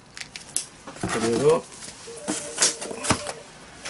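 Items rustle as they are lifted out of a cardboard box.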